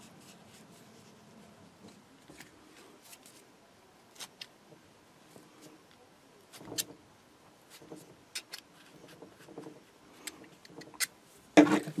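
Soft cotton wadding rustles as it is pulled out.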